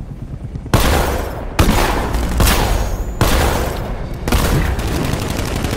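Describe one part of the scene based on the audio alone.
Loud blasts and explosions boom in quick succession.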